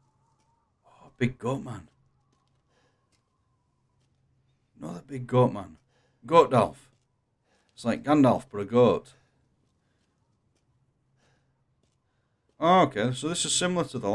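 A young man talks into a microphone with animation, in short bursts.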